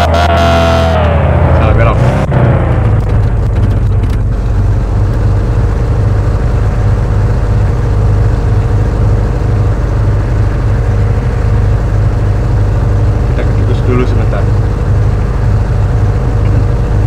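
A car engine drones steadily, its pitch dropping at first.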